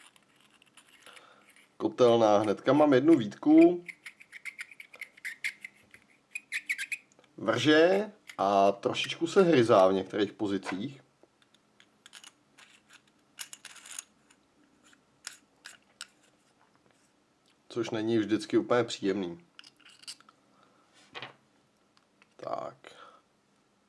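Small metal parts click and scrape as they are handled and screwed together.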